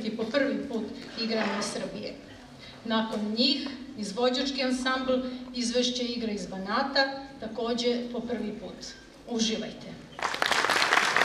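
A woman sings into a microphone in a large hall.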